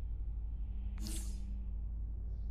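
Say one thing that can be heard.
A game menu plays a short bright chime.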